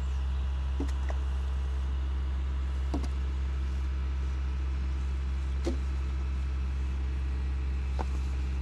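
Burning wood crackles and pops now and then.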